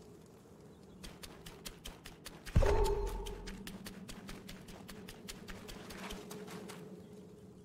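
Footsteps patter quickly over stone.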